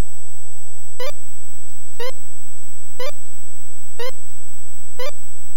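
A video game gives a short falling chirp once every second as letters are entered.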